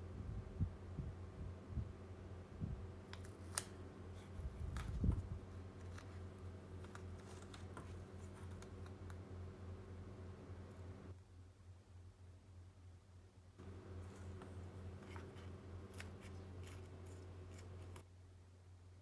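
Sticky tape crinkles and crackles as it is pressed onto a plastic shell.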